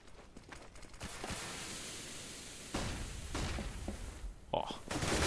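A high steady ringing hiss follows a grenade blast.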